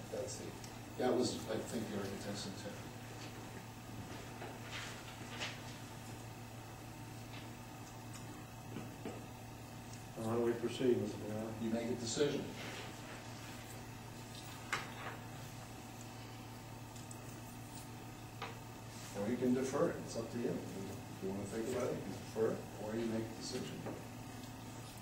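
A man speaks calmly in a room, heard from a distance.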